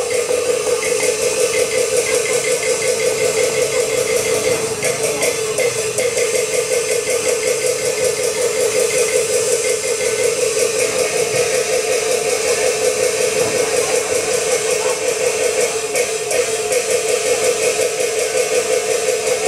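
Loud stage music with rapid, steady percussion plays through loudspeakers outdoors.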